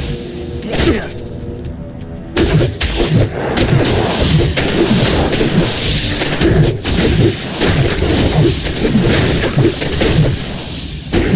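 Magic spells crackle and burst repeatedly.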